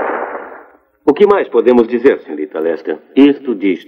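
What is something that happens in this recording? A man speaks into a microphone through a loudspeaker in a large hall.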